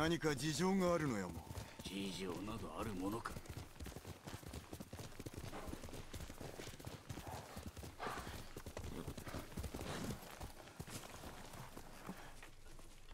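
Horse hooves thud steadily on grass.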